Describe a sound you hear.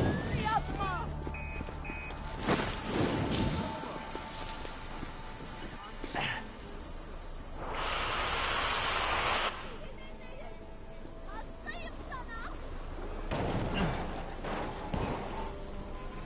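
Fiery blasts burst and crackle loudly.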